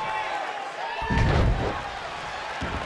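A heavy body slams onto a wrestling mat with a deep thud.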